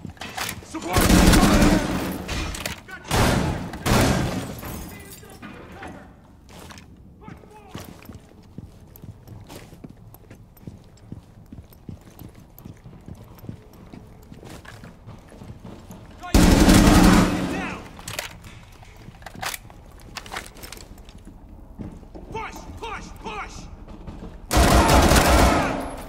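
Loud bursts of rifle fire ring out indoors.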